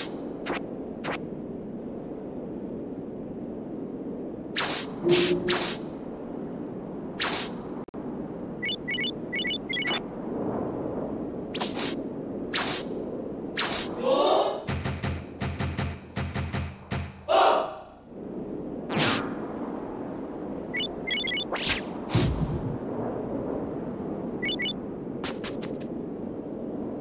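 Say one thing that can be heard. Short game sound effects click and blip now and then.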